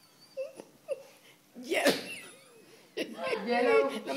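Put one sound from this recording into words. An elderly woman laughs heartily close by.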